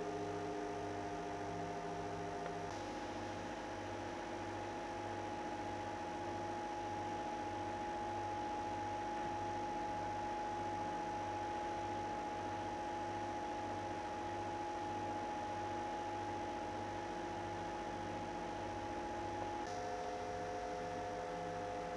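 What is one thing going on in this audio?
An electric fan motor hums steadily with a pulsing throb.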